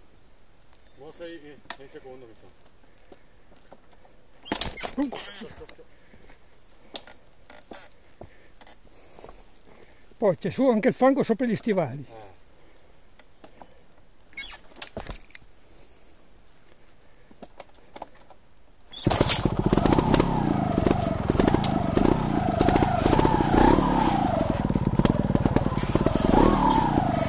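A motorbike engine revs in short bursts, then roars loudly as the bike climbs.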